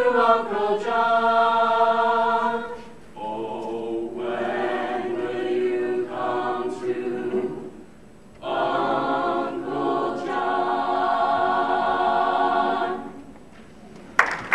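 A choir sings together in a large echoing hall.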